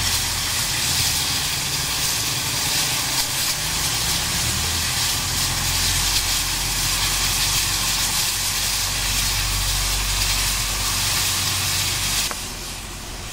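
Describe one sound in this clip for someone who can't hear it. A crane's engine chugs and rumbles.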